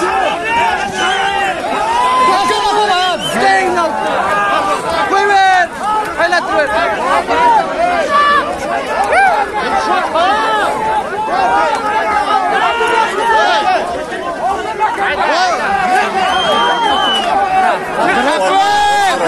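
A large crowd of men shouts and calls out loudly all around, close by.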